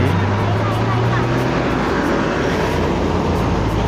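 A heavy truck roars past on a wet road.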